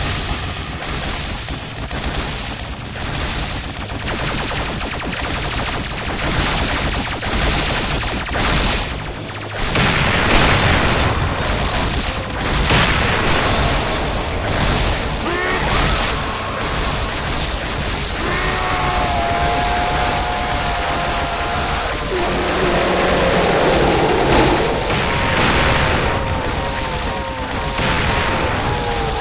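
Guns fire in rapid, crackling bursts.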